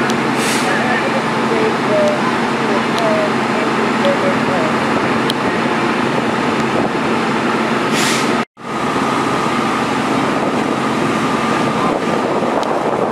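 A large fire roars and crackles steadily.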